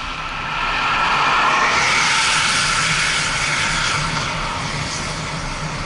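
A car passes by in the opposite direction.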